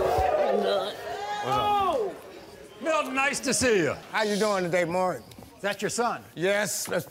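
A man shouts with excitement.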